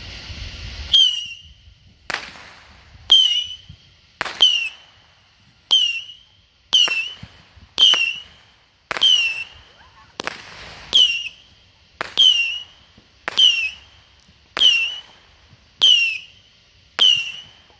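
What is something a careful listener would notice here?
Fireworks bang one after another in a steady series outdoors.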